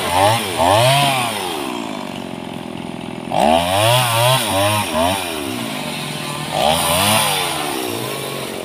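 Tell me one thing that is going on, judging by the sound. A small gas chainsaw revs in short bursts.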